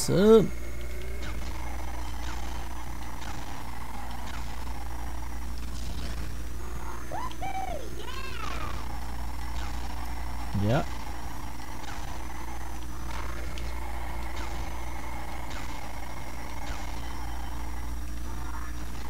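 A kart engine whines steadily throughout.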